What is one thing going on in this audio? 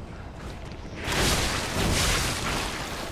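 Weapons clash and a loud rushing burst erupts in a fight.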